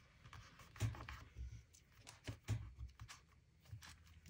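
Paper rustles and crinkles as hands handle it.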